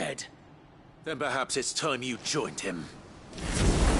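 A second man answers coldly.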